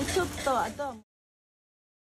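A group of people call out cheerfully together.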